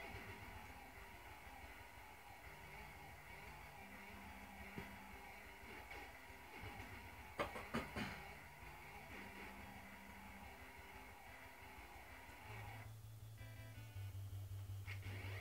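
Chiptune video game music plays.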